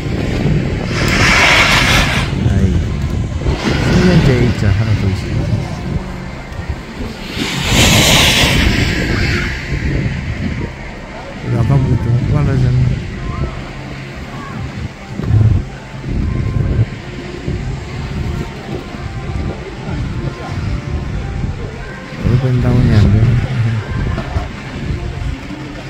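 Skis scrape and hiss across packed snow nearby.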